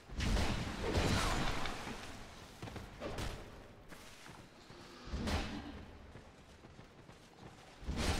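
Weapons clash and strike with heavy thuds.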